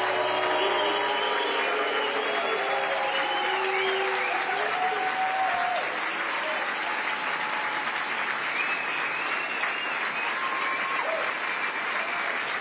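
Music plays.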